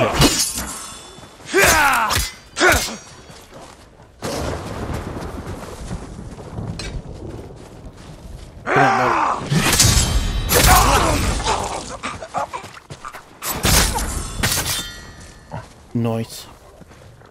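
Swords clash and slash.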